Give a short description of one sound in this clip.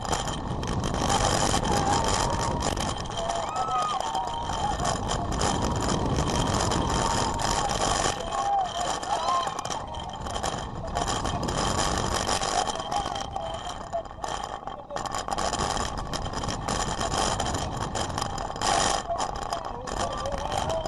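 Wind roars loudly past a microphone on a fast-moving ride.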